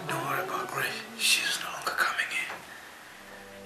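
A young man murmurs softly close by.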